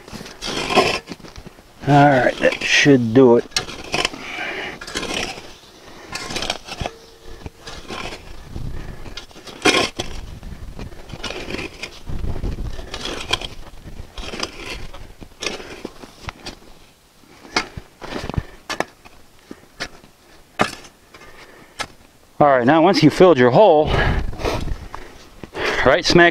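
A shovel scrapes and chops into dry soil.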